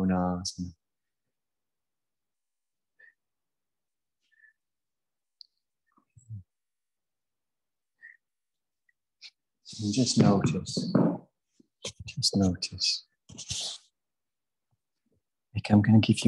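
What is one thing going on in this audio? A man speaks calmly through a microphone, with long pauses.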